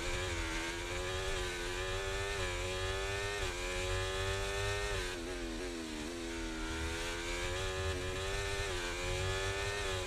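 A racing car engine screams at high revs, rising and dropping in pitch as gears change.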